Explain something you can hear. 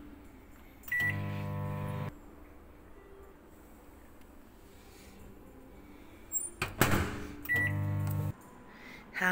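A microwave oven beeps as its buttons are pressed.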